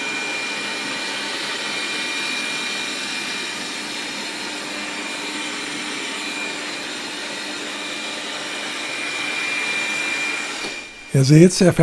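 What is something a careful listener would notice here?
A robot vacuum cleaner hums and whirs steadily.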